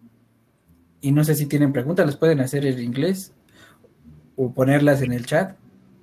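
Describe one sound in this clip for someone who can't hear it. A man speaks with animation through a microphone on an online call.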